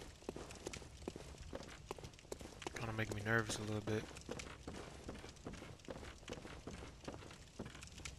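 Footsteps thud quickly on wooden boards.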